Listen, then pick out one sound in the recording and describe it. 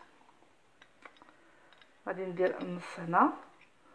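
A metal spoon scrapes powder in a ceramic dish.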